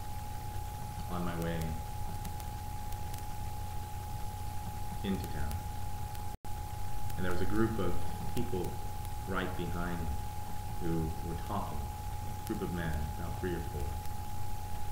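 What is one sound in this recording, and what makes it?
A man speaks calmly and slowly, close by, with long pauses.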